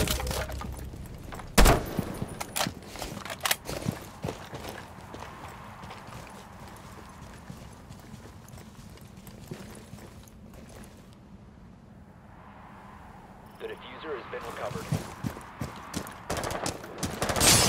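Footsteps thud and crunch over the ground.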